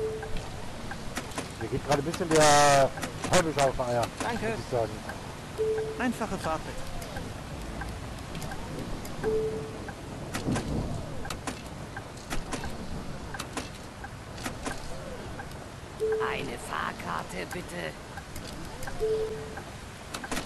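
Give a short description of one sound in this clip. An electronic ticket machine beeps briefly.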